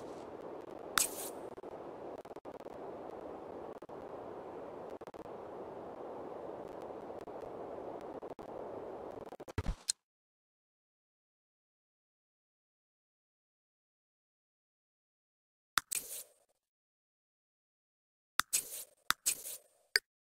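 A short notification chime sounds.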